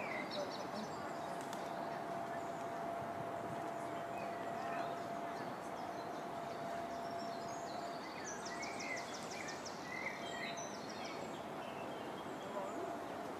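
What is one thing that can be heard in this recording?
Water laps gently against a stone bank.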